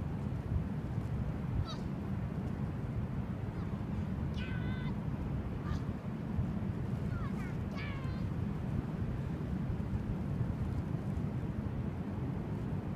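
Waves wash onto a beach in the distance.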